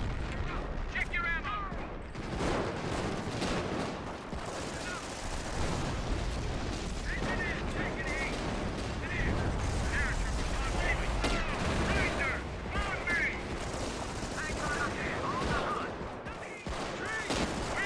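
Gunfire and explosions rumble from a battle game.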